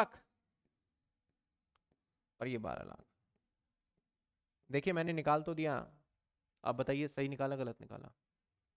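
A man explains calmly into a close microphone, in short bursts with pauses.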